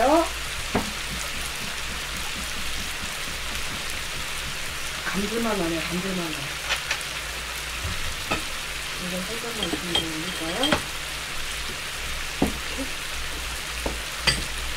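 Plastic and food rustle and tap close up.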